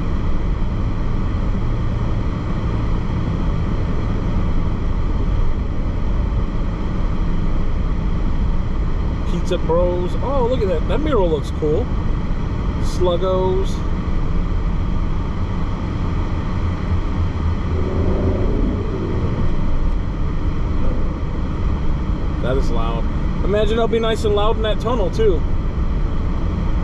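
A car engine hums and tyres rumble steadily on the road.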